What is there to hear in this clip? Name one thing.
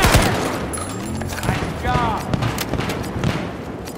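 A rifle is reloaded with a metallic click.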